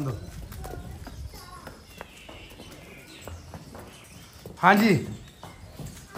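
Hooves clop slowly on a hard floor.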